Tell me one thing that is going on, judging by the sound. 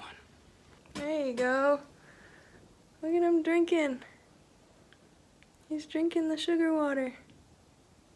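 A young woman speaks softly and playfully, close by.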